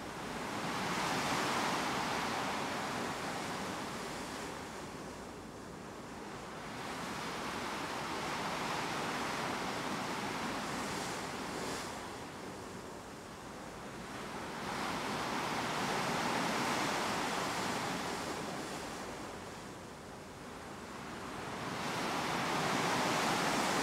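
Water swishes along the hull of a moving ship.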